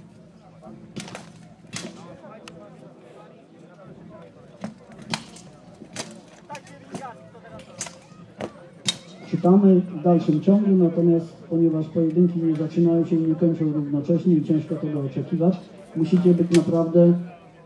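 Steel weapons clang against armour and shields.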